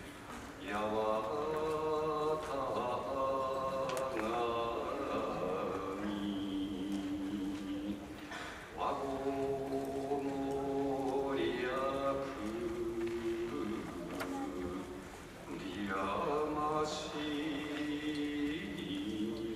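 A man chants in a long, drawn-out voice in a large echoing hall.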